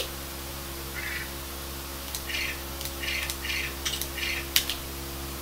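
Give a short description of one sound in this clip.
A television plays short chiming menu sounds from a video game.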